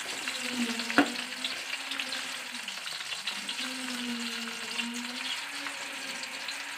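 Nuts sizzle and crackle as they fry in hot oil.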